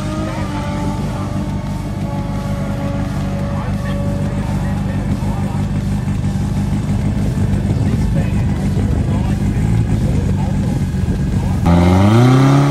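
A powerful car engine rumbles at idle.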